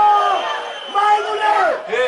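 A man shouts from the sideline.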